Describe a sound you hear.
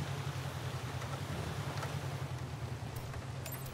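Tyres rumble over rough ground.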